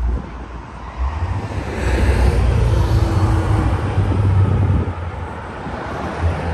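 A car engine hums as it approaches and passes close by.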